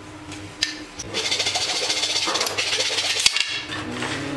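A file scrapes steadily along wood.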